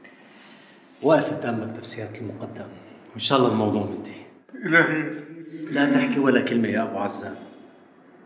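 A second man answers warmly, talking close by.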